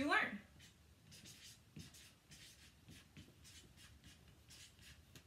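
A marker squeaks in short strokes across paper.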